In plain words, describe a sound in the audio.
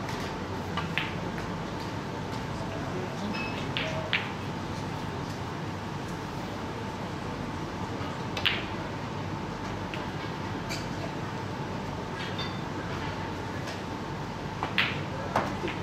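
A cue tip strikes a ball with a sharp click.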